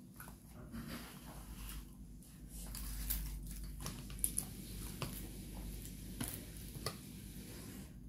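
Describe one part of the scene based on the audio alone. Crisp fried fish crackles as fingers tear it apart.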